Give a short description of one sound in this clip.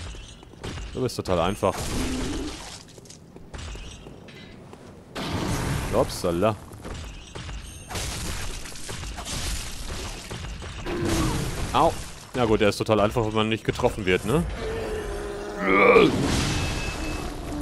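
A huge beast roars and growls loudly.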